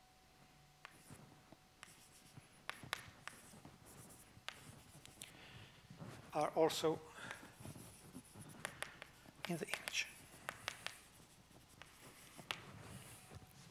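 Chalk taps and scratches on a blackboard.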